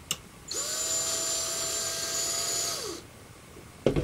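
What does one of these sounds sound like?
A cordless drill whirs steadily, then winds down.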